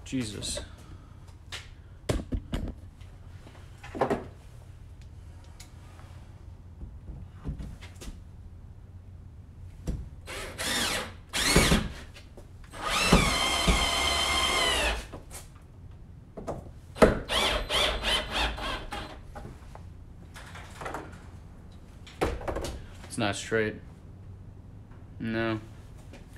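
A man talks close by, calmly.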